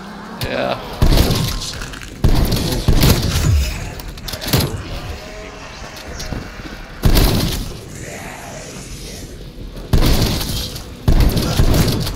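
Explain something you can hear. A shotgun fires loud, booming shots again and again.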